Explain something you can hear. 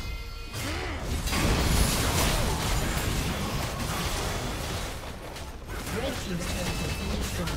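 Spell effects crash and whoosh in a busy fight.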